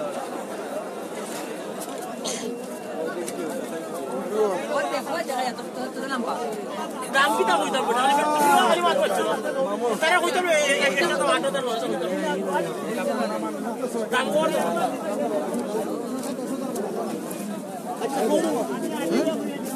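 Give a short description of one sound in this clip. Many men talk loudly at once in a bustling crowd nearby.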